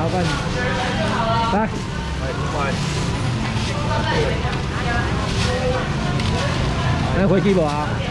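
A plastic bag rustles as a man handles it.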